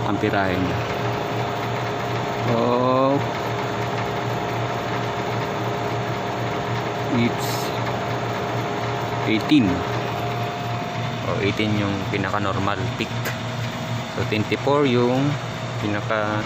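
An air conditioning unit hums steadily close by.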